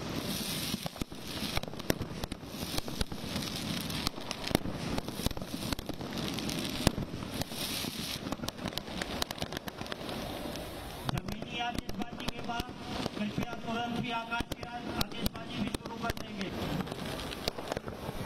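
Fountain fireworks hiss and roar steadily.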